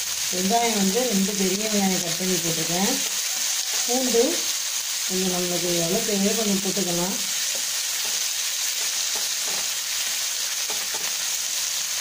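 A wooden spatula stirs and scrapes onions around a nonstick frying pan.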